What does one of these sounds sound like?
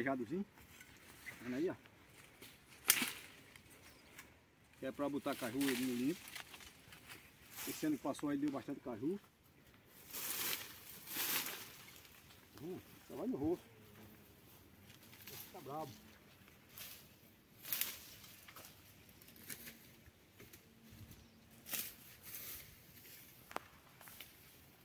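A hoe chops into the ground in repeated blows.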